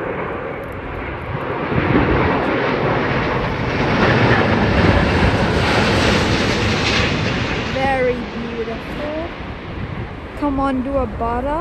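A jet airliner roars loudly as it passes low overhead, then fades into the distance.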